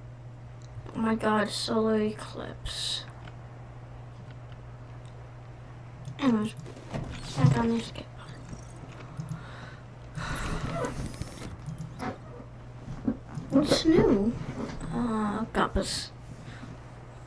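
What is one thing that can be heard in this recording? A young girl talks in short bursts close to a microphone.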